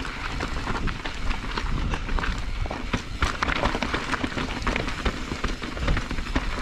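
Bike tyres rattle and crunch over loose rocks.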